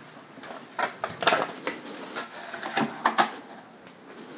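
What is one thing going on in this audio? Plastic objects knock and rattle as they are handled.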